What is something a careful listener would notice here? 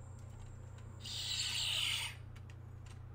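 A toy device plays a short hissing electronic sound.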